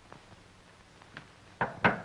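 Footsteps cross a floor.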